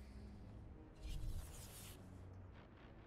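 Electric lightning crackles and buzzes loudly.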